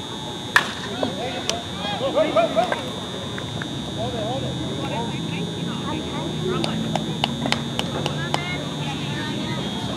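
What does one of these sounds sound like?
Men shout and cheer across an open field.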